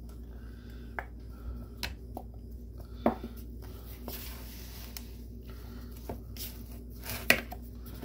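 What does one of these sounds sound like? A spoon scrapes and knocks against a plastic bowl.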